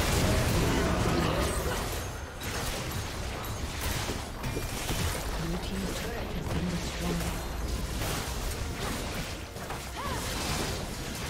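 Magical blasts and whooshes crackle in a busy battle.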